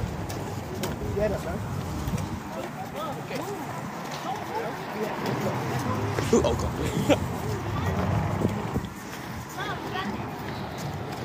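Children chatter and talk quietly nearby.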